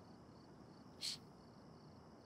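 A young woman sniffles while crying.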